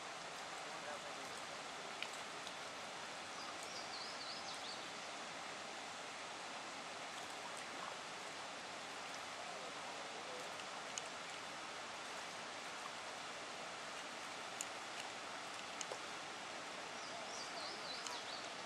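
Paddles splash in the water.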